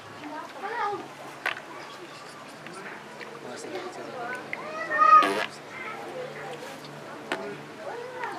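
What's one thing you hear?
A crowd of men murmurs and talks nearby.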